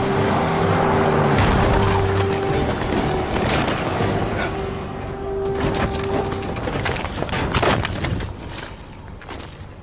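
Car bodies crash and crunch against each other.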